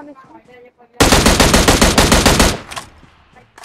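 Rapid gunfire rattles in a loud burst close by.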